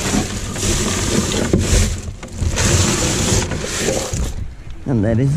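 Plastic wrappers rustle and crinkle under gloved hands.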